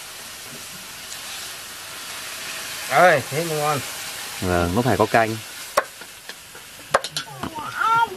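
Oil sizzles in a hot wok.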